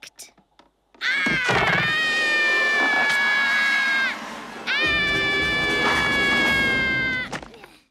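A young child screams long and loud.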